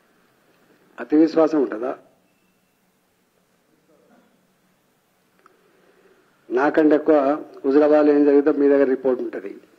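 An older man speaks with animation into a microphone, close by.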